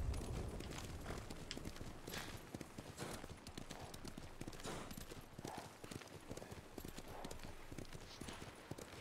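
A horse gallops with quick, steady hoofbeats.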